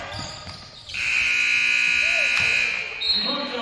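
A loud buzzer blares steadily and then stops.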